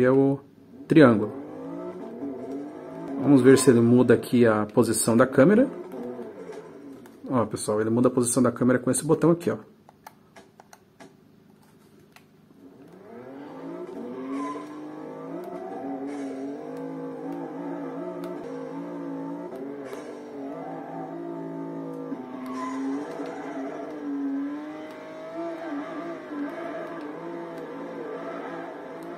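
A racing game's car engine revs and roars from a television speaker.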